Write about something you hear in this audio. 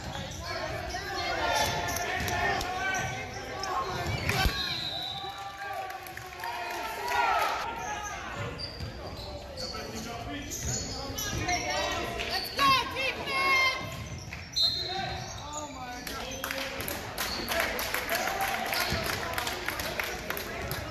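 Sneakers squeak sharply on a hardwood floor in an echoing gym.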